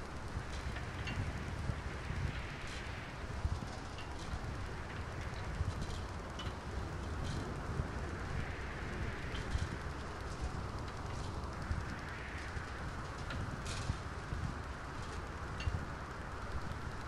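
A machine rumbles and rattles steadily as it rolls along.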